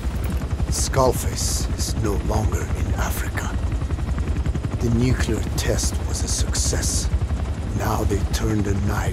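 An elderly man speaks slowly in a low voice.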